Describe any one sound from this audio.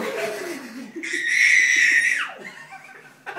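A toddler squeals in a high voice.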